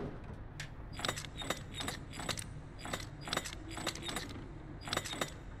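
A metal dial lock clicks sharply as its dials turn.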